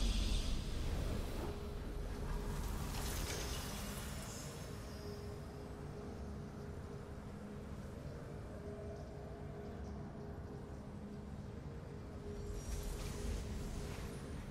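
A triumphant victory fanfare plays and holds a long note.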